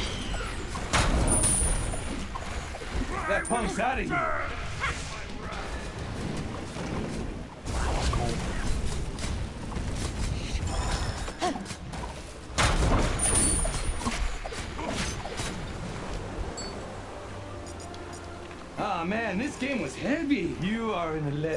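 Booming blasts and crackling magic effects sound from a video game fight.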